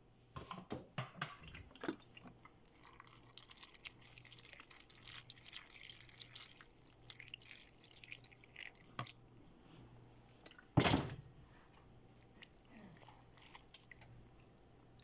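A spatula scrapes and clinks against a metal pot.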